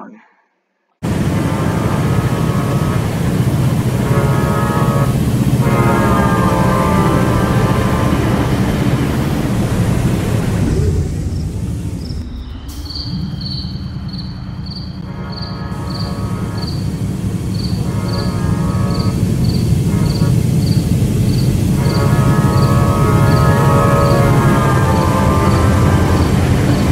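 A train engine rumbles steadily as the train rolls along the tracks.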